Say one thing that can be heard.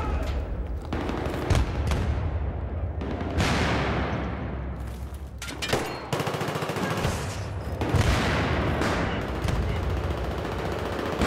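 A rifle fires in bursts with echoing gunshots.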